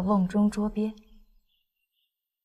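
A young woman speaks softly and slyly, close by.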